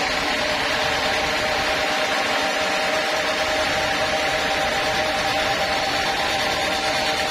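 A sawmill band saw cuts through a teak log under load, with a steady high whine.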